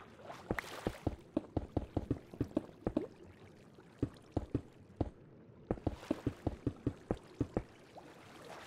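A pickaxe chips rapidly at stone blocks in a game.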